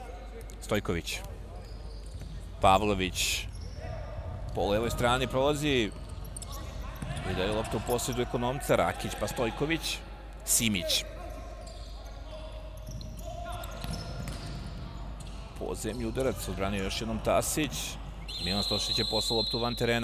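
A ball thuds as it is kicked across a hard indoor court.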